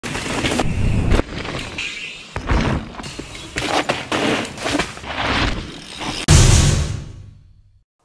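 Bicycle tyres rumble and crunch over a dirt trail.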